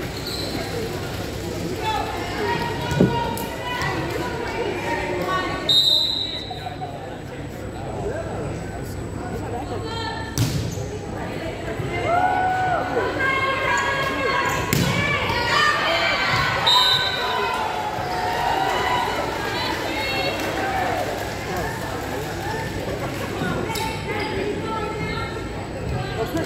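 Voices of young women and spectators chatter and call out in a large echoing gym.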